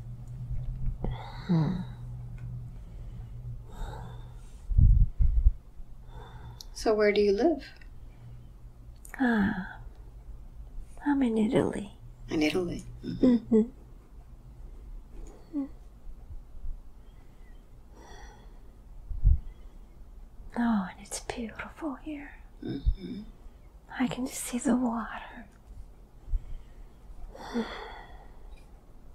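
An elderly woman speaks weakly and haltingly, close by, in short bursts with pauses.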